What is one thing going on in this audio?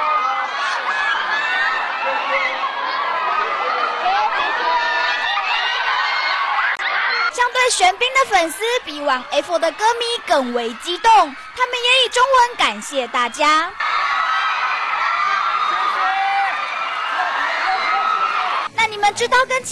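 A large crowd of young women screams and cheers in an echoing hall.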